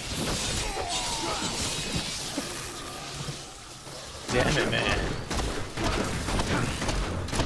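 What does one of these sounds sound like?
Magic spells crackle and burst with whooshing blasts.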